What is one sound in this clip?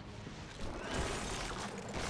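An explosion bursts with a loud crack.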